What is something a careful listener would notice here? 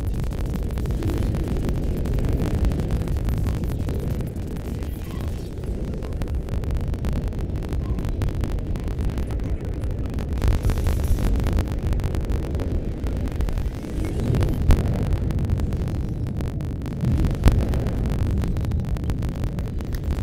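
A spaceship's engine rumbles low and steady.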